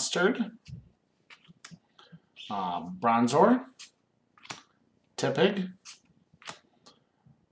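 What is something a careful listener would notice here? Playing cards rustle and slide against each other.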